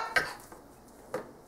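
A young child gives a short, high squeal.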